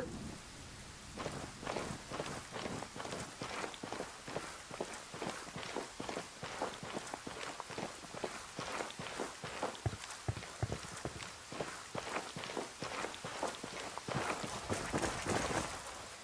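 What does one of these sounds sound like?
Footsteps crunch quickly over rough gravel.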